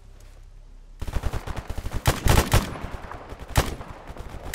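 Rapid gunfire rings out in bursts.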